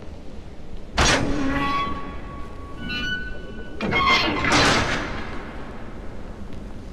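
A heavy iron gate grinds and clanks open.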